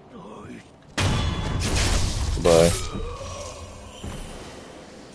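A sword slashes and strikes loudly.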